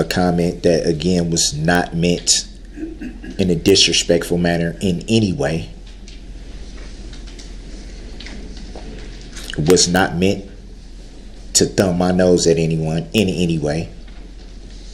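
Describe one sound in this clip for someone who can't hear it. An adult man speaks in short phrases with long pauses.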